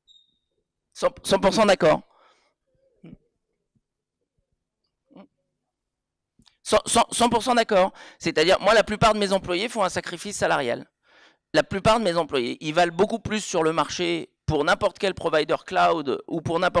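A man speaks into a microphone with animation, heard through a loudspeaker in an echoing room.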